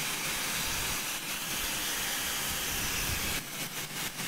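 A hair dryer blows with a steady whoosh close by.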